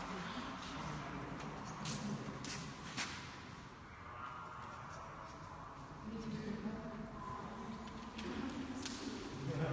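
A sheet of paper rustles in hands.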